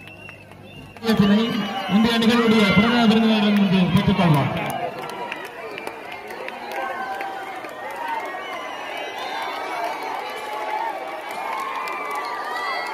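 A crowd of young people chatters and cheers outdoors.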